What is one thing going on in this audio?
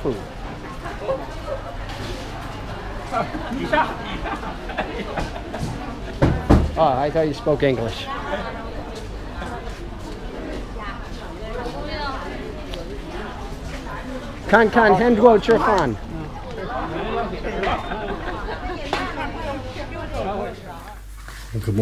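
People chatter along a busy street outdoors.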